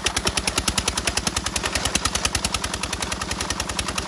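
Rocks clatter as they are tipped into a crushing machine.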